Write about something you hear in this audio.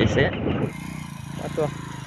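A motorcycle engine idles.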